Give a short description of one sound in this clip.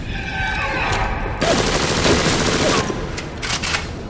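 A shotgun is reloaded with metallic clicks.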